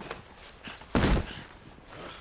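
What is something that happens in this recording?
A body drops with a heavy thud onto gravel.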